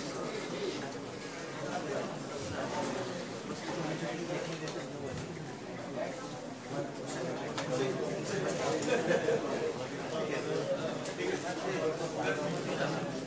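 A crowd of men and women talks and shouts over each other in a large hall.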